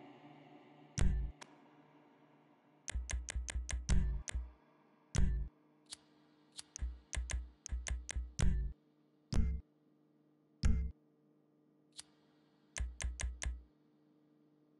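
Short electronic menu beeps and clicks sound in quick bursts.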